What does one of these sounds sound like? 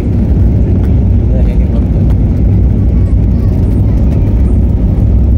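Jet engines roar loudly as an airliner speeds along a runway.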